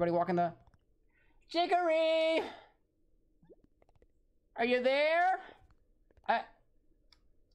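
A young man speaks expressively, close to a microphone, in short bursts.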